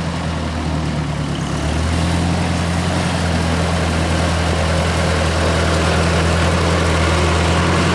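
A tractor engine revs up as it drives nearer.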